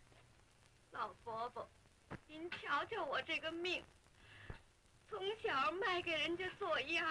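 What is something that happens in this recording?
A woman speaks with strong emotion, close by.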